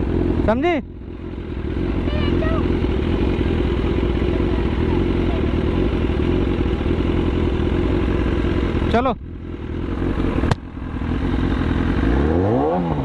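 An inline-four sportbike engine idles.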